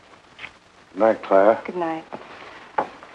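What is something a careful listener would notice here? A young woman speaks warmly and close by.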